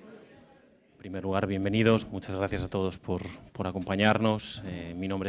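A man speaks into a microphone in a calm, clear voice.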